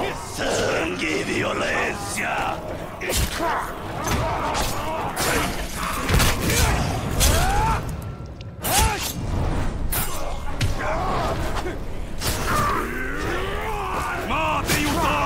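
Game creatures snarl and scream in battle.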